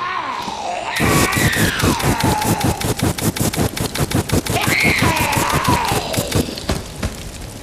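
A heavy machine gun fires in a fast, steady burst.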